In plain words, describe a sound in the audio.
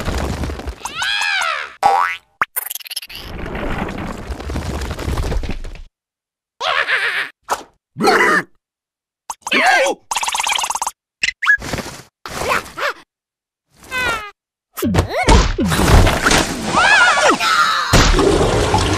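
A cartoon bug screams in high squeaky panic.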